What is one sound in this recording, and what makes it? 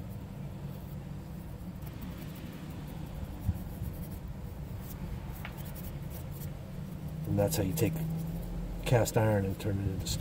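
A gloved finger scrapes softly through sand.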